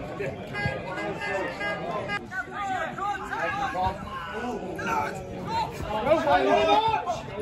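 Men shout to each other outdoors across a playing field.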